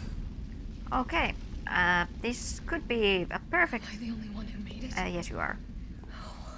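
A young woman talks into a close microphone.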